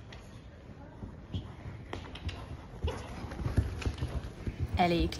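A horse's hooves thud on soft sand, growing louder as the horse draws near.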